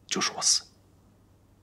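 A man speaks quietly and tensely close by.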